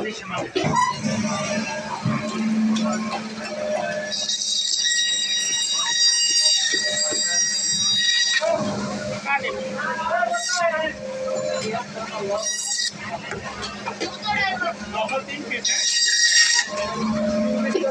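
A band saw runs with a steady low hum.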